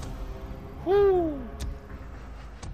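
A short game chime sounds with a falling tone.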